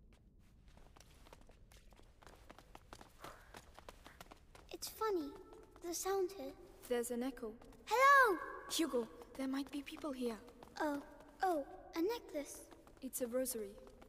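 Footsteps tap on a stone floor in an echoing hall.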